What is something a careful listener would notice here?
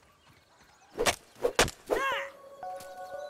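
Heavy blows thud sharply against a stalk.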